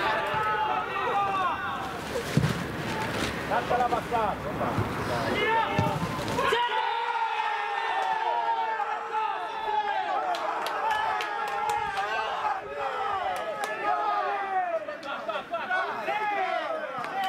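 Young men shout across an open field.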